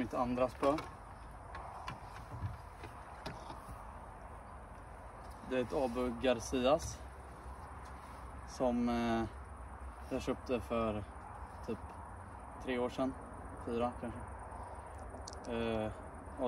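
A young man talks close by, in short bursts.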